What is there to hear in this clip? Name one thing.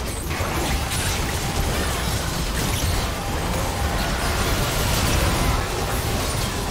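Video game combat effects clash and burst during a team fight.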